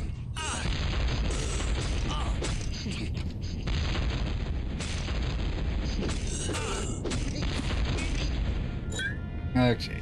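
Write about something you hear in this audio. Fiery blasts burst and roar loudly.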